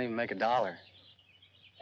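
A young man speaks earnestly, close by.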